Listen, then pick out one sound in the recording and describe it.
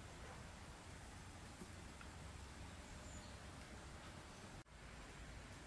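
Water pours from a kettle into a bowl.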